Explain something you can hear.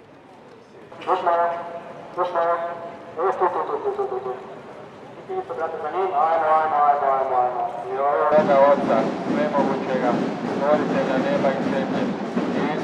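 A large crowd sings together outdoors.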